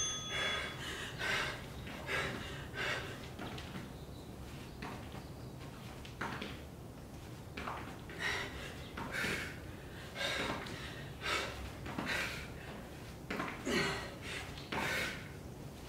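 Sneakers thump and scuff on a mat in quick steps.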